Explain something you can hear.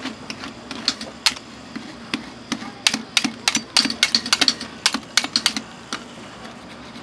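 Metal spatulas tap and clatter rapidly on a cold metal pan.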